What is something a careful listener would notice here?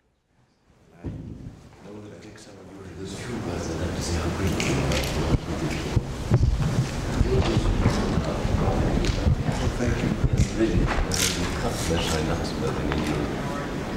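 A crowd of people chatter in a room.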